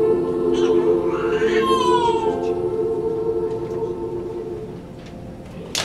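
A large children's choir sings a held chord in a hall, then fades out.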